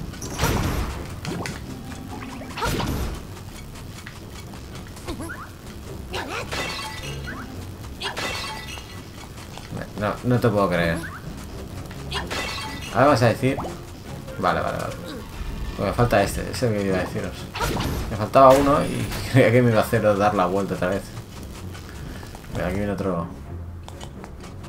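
Game sound effects chime and zap.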